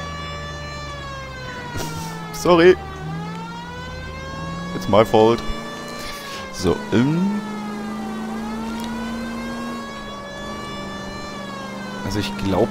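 A car engine hums steadily, its pitch rising and falling as the car speeds up and slows down.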